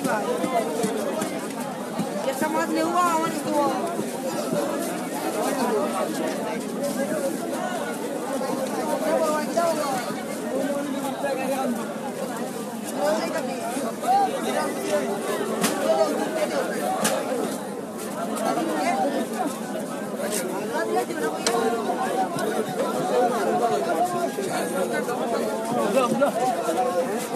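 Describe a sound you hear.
A crowd of men talks loudly all around, close by.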